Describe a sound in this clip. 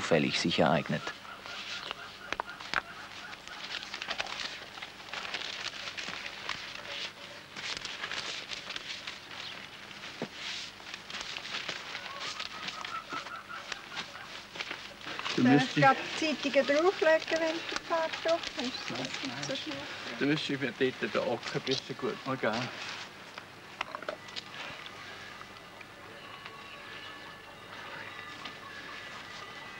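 A paintbrush swishes and scrapes across a board.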